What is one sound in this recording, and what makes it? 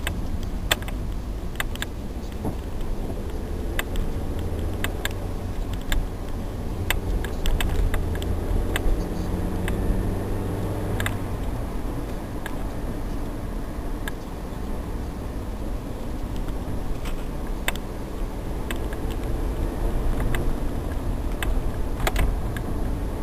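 A car rattles and knocks over bumps.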